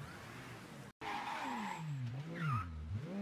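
Car tyres screech on asphalt as the car spins.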